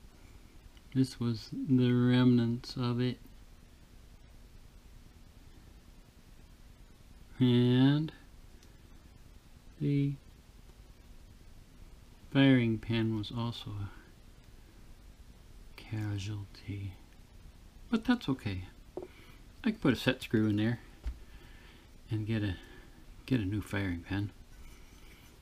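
A man talks calmly and close by, with pauses.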